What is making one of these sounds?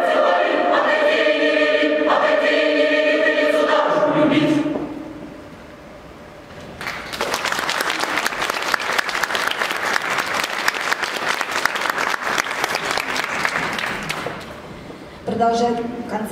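A large mixed choir sings together in an echoing hall.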